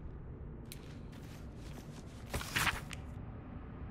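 A book's pages rustle as it opens.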